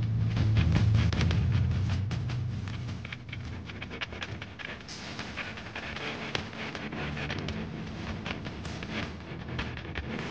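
Drums and cymbals play a steady beat.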